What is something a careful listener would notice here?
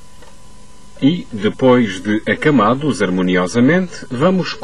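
A man talks calmly and clearly.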